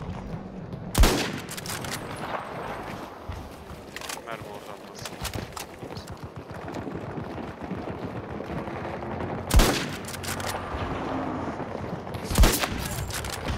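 A rifle fires single loud shots that echo away.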